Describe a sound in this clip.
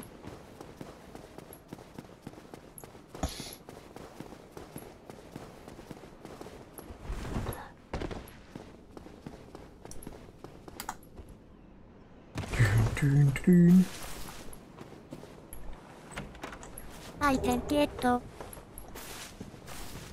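Footsteps patter quickly on stone.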